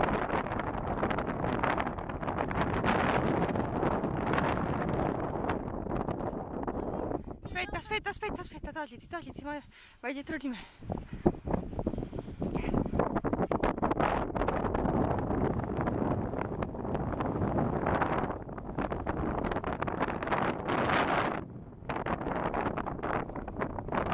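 Strong wind buffets and rumbles outdoors.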